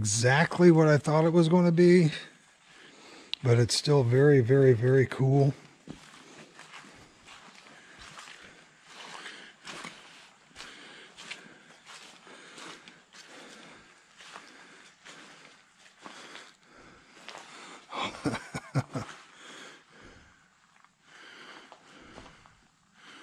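Footsteps crunch and squelch on a muddy dirt path.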